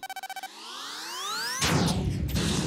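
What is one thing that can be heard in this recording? A rocket engine whines, rising quickly in pitch.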